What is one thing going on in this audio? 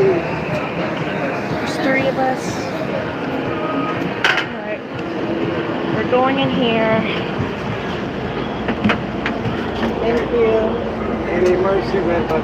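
A woman talks and laughs close by.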